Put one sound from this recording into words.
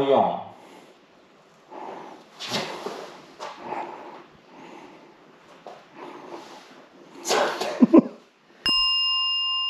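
Metal parts clink as a man works on a scooter.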